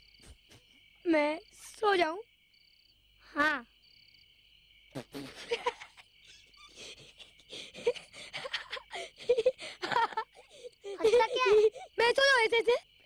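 A young boy speaks close by.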